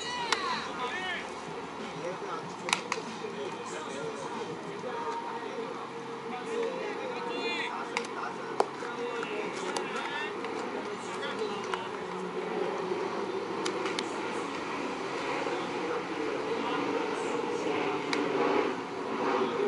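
A man calls out to players outdoors.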